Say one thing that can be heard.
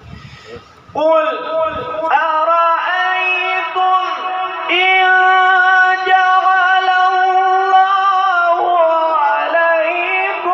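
A young man sings in a long, drawn-out chant through a microphone and loudspeakers.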